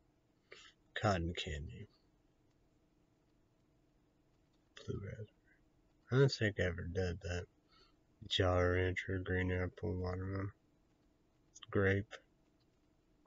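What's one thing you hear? A young man speaks calmly close to a microphone, in short bursts with pauses.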